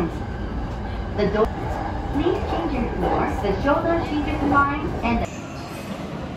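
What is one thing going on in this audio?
An electric commuter train rumbles along the rails, heard from inside the car.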